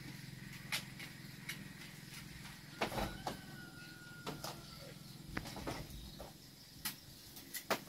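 A small wood fire crackles.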